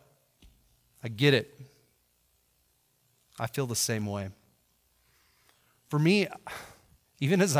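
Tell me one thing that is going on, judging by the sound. A man speaks calmly and closely into a headset microphone, in short phrases.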